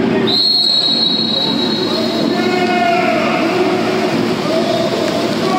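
Swimmers splash and churn the water.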